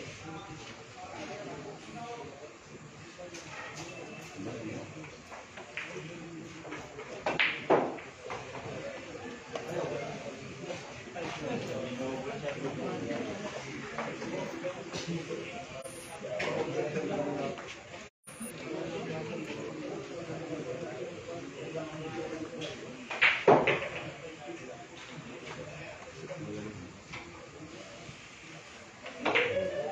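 A crowd of men murmurs and chats nearby.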